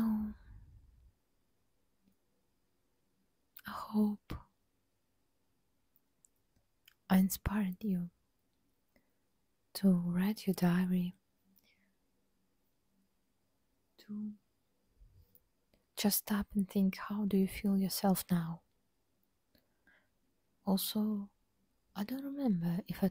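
A young woman makes soft mouth sounds close to a microphone.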